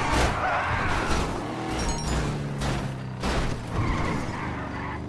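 A car crashes and rolls over with loud thuds.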